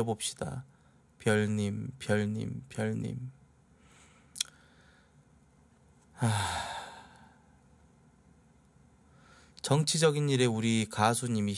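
A man speaks with animation into a close microphone, in bursts with pauses.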